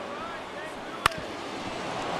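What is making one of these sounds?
A baseball smacks into a catcher's mitt with a sharp pop.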